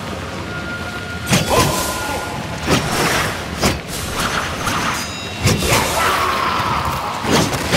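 Ghostly magical whooshes swell and crackle.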